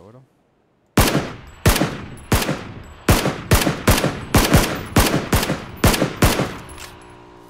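A rifle fires a rapid string of loud shots.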